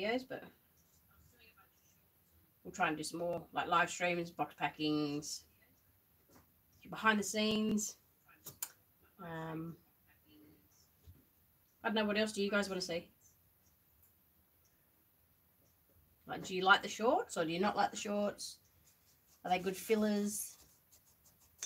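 A woman talks calmly and close by, in short phrases with pauses.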